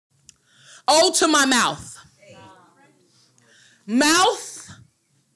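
A young woman recites poetry with feeling into a microphone.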